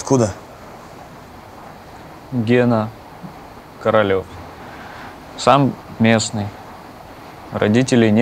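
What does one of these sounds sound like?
A man speaks calmly nearby in short phrases.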